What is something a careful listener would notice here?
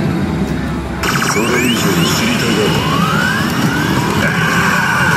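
A slot machine's sound effects whoosh and sweep upward.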